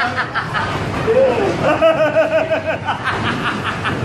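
A young man shouts and laughs loudly nearby.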